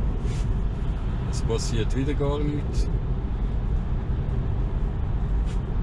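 A car cruises along a highway with a steady low rumble of tyres on the road.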